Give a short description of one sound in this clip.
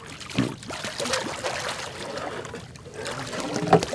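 A hooked fish thrashes and splashes at the water's surface.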